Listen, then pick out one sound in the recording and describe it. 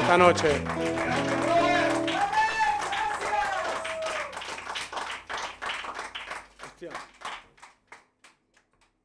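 Live blues music plays and fades out.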